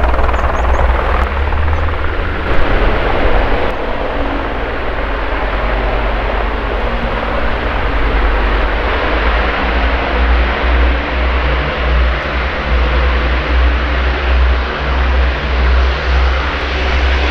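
A helicopter's rotor thumps loudly with a whining engine as it flies past outdoors.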